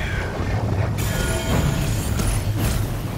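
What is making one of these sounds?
Energy beams zap with a sharp buzzing hum.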